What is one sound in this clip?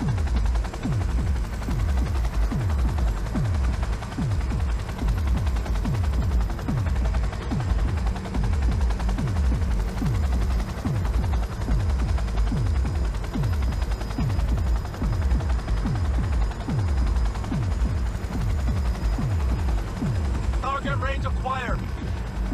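Heavy rain patters and hisses.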